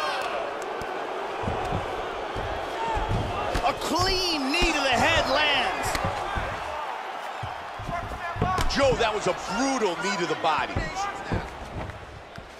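Fists and kicks land with dull thuds.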